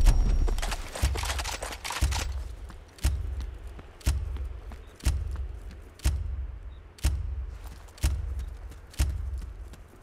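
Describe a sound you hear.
A countdown timer ticks once every second.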